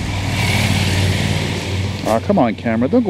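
A motorcycle engine hums nearby and slowly fades.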